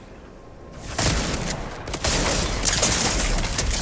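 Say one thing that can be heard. Gunshots blast loudly in quick bursts.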